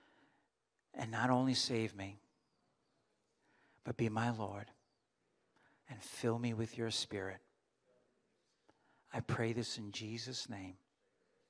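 An older man speaks calmly into a microphone in short phrases with pauses.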